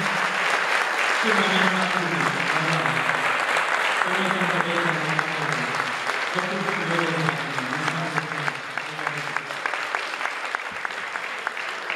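A folk band plays along.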